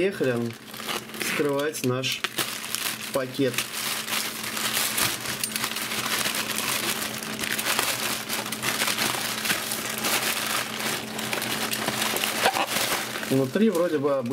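A knife slices and tears through a plastic mailer bag with loud crinkling.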